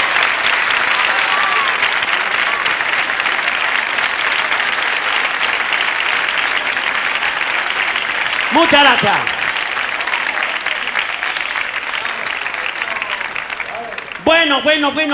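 An audience claps steadily and loudly.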